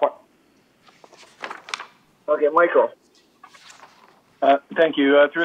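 A man speaks calmly over an online call, in short bursts.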